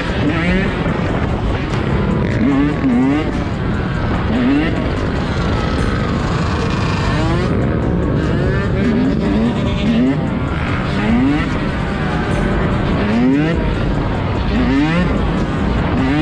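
A dirt bike engine roars close by and revs up and down.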